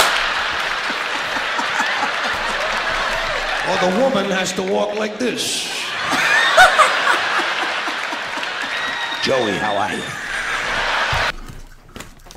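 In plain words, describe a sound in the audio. A young man laughs loudly and shrieks close to a microphone.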